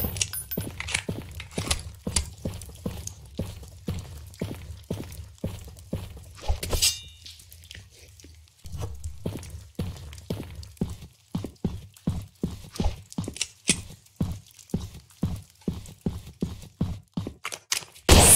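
Footsteps crunch steadily over rocky ground.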